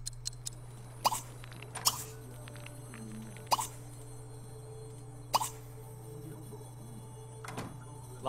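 Short interface clicks sound now and then.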